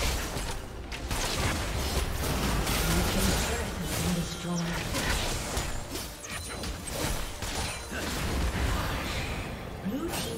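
Magic spells crackle and blows clash in a busy game battle.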